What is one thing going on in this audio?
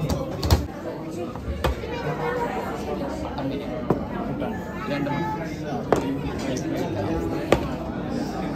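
Dishes clink and knock as they are set down on a table.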